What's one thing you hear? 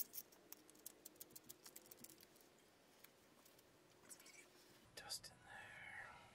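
A sheet of paper rustles in hands.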